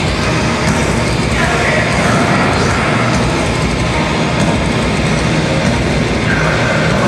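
Drums and cymbals are pounded hard.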